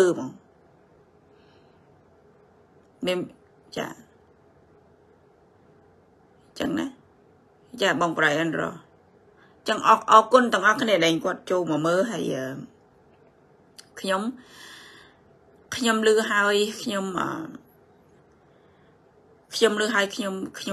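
A woman speaks in short bursts with pauses, heard through an online call.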